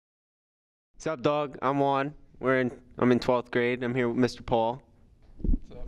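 A young man speaks with animation into a handheld microphone, close up.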